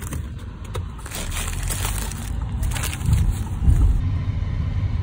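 Paper wrapping crinkles and rustles close by.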